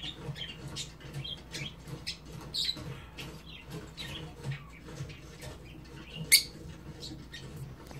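A small parrot chirps and squeaks in short high bursts.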